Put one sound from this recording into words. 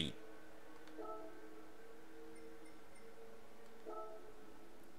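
A soft electronic menu blip sounds.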